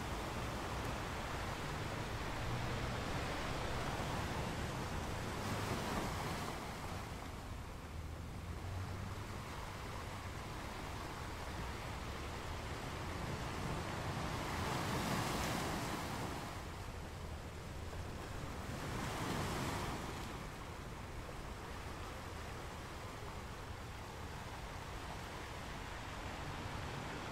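Ocean waves crash and roll onto rocks outdoors.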